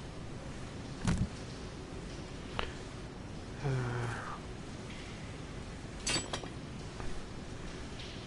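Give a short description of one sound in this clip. Menu clicks sound sharply now and then.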